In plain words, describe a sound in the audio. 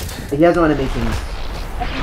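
A magic spell bursts with a crackling flash.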